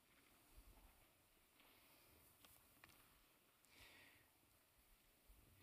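Footsteps shuffle softly across a wooden floor.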